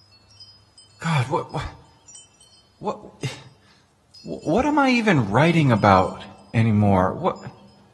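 A man speaks expressively, singing out long words, in a hall with a slight echo.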